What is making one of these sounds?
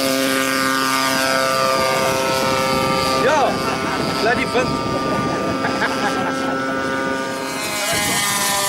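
A model airplane engine buzzes steadily overhead, its pitch rising and falling as it passes.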